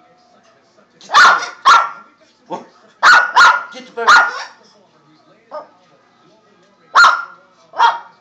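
A parrot squawks loudly.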